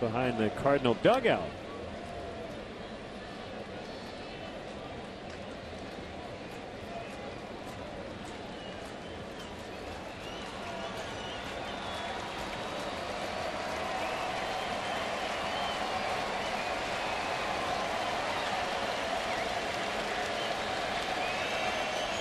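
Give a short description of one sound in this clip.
A large stadium crowd murmurs and cheers, growing louder.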